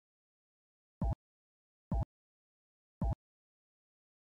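Short game menu clicks sound several times.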